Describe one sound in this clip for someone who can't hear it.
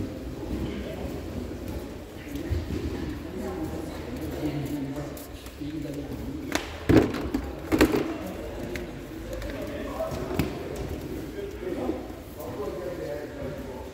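Bodies thump and shuffle on a padded mat.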